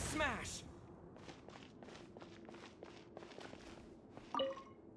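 Quick footsteps tap on a hard floor.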